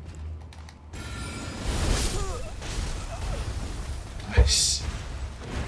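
A magic blast booms and crackles.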